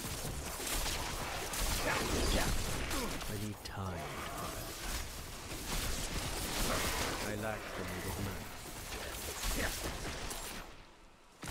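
Electric spells crackle and zap in quick bursts.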